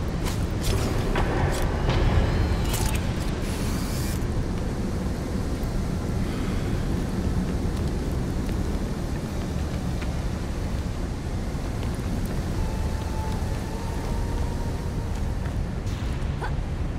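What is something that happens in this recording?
A low rumble drones steadily, as in a deep cave.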